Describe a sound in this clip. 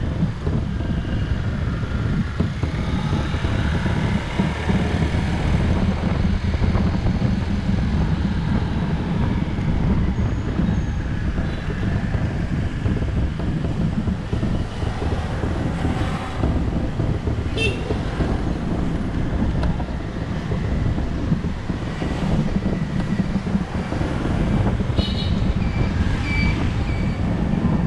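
Wind rushes past a microphone outdoors.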